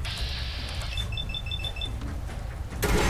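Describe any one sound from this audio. Short electronic beeps sound.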